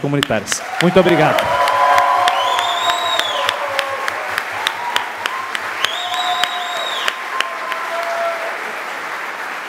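People in a crowd cheer and shout.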